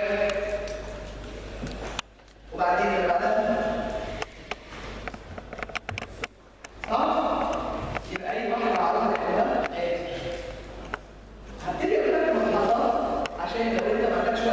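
A woman lectures calmly into a microphone.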